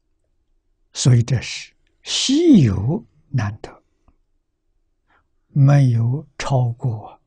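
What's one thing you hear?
An elderly man speaks calmly with pauses, close to a microphone.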